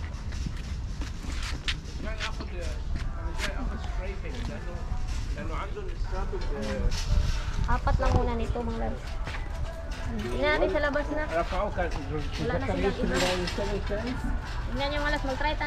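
A shopping cart rattles as it rolls.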